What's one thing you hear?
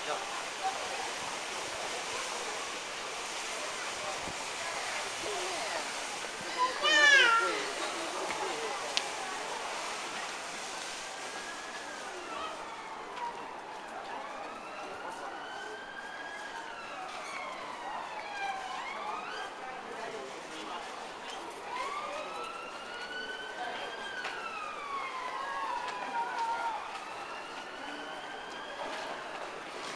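A crowd of men and women murmurs and chatters in the distance.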